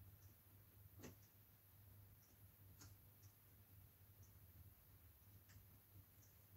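Small objects tap and click on a table.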